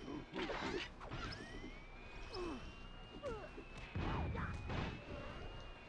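Metallic blows and clanks ring out in a fight.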